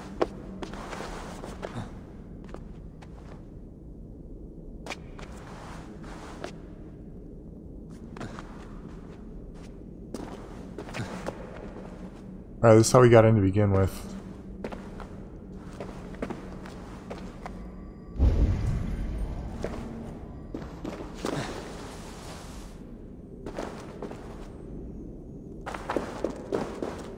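An older man talks into a close microphone, calmly and now and then with animation.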